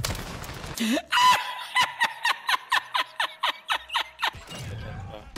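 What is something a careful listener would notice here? An elderly man laughs loudly into a microphone in bursts.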